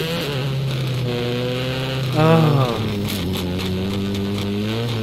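Rally car engines roar steadily.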